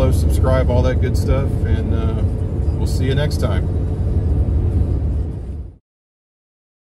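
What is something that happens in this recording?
A car engine hums and road noise rumbles steadily.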